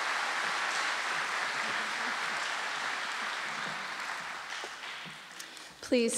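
An audience applauds in a large hall, and the applause slowly fades.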